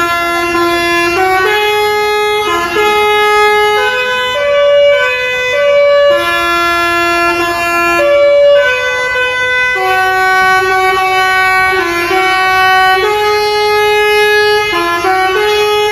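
A bus horn plays a loud, tuneful melody of long held notes.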